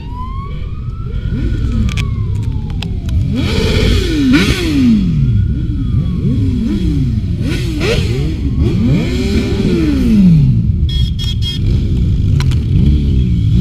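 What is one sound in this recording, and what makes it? Motorcycles roar past one after another, engines rising and falling in pitch as they go by.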